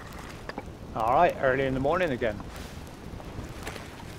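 Water laps gently against a boat.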